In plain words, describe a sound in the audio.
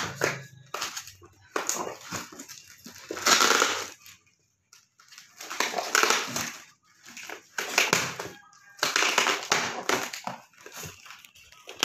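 Scissors snip at tape on a cardboard box.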